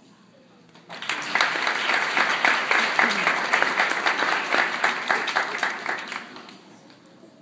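A crowd of children claps and cheers.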